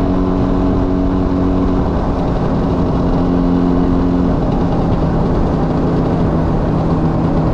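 A motorcycle engine drones steadily up close, its pitch shifting slightly.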